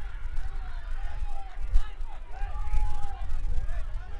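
A football is kicked hard across grass.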